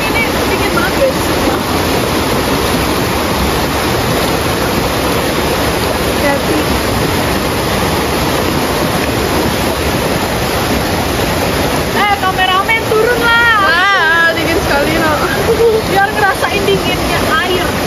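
A stream rushes steadily over rocks.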